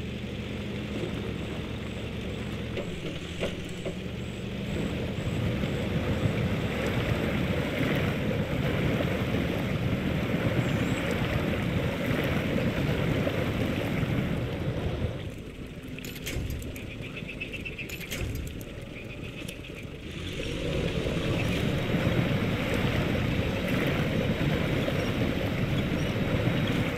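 A truck engine roars as the truck churns through mud.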